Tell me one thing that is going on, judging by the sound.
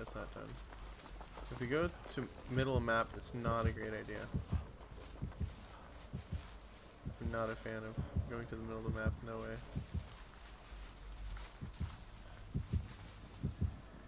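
Footsteps crunch softly on the ground.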